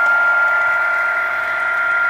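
A model train hums along the track.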